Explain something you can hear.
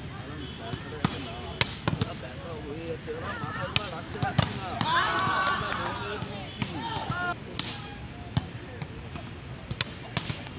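A volleyball is hit with sharp slaps outdoors.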